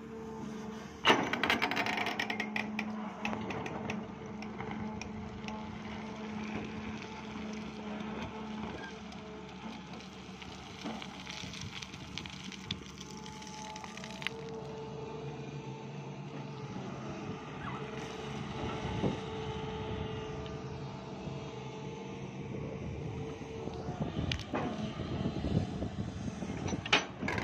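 An excavator bucket scrapes and crunches through stony soil.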